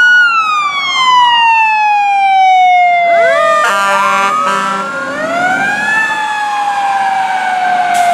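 A heavy truck engine roars as it pulls away.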